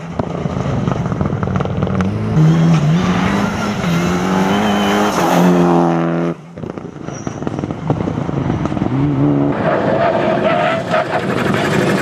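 Tyres squeal and scrub on asphalt.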